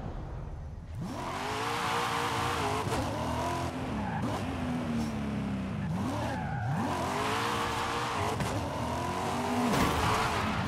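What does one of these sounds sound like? A sports car engine revs up and down through the gears.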